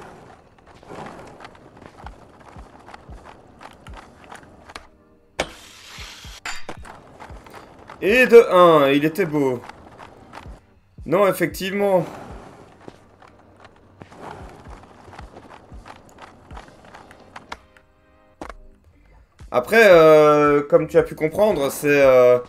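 Skateboard wheels roll and clack over paving stones.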